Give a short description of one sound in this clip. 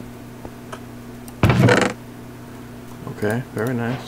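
A wooden chest creaks open in a video game.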